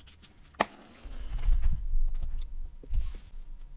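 A squeeze bottle of sauce squirts.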